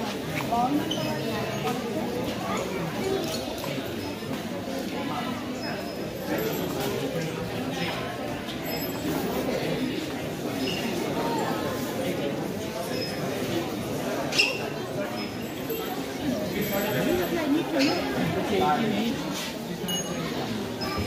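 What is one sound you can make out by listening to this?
A crowd of men and women chatters steadily nearby in a busy echoing hall.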